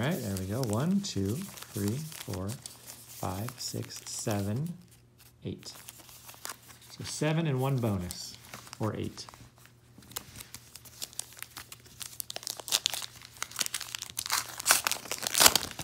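Foil card wrappers crinkle and rustle in hands.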